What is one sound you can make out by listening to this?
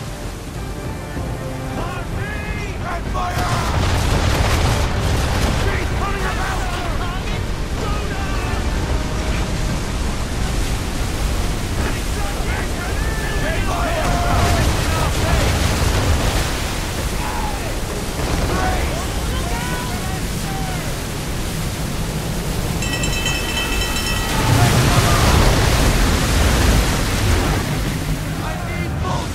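Men shout across a ship's deck in a storm.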